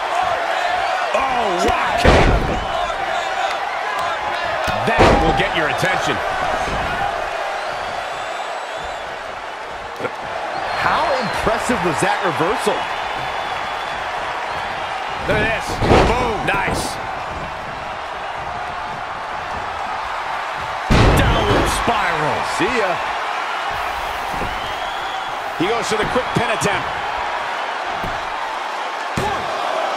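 A large crowd cheers steadily throughout.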